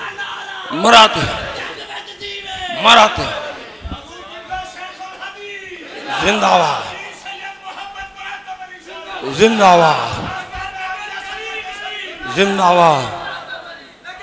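A crowd of men shouts back in unison.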